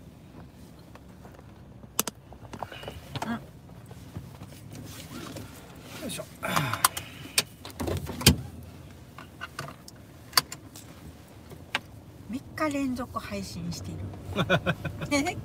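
A car engine hums steadily inside a moving vehicle.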